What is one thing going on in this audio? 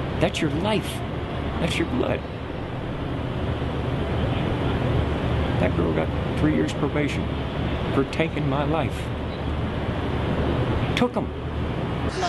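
A middle-aged man speaks in a rough, low voice close by.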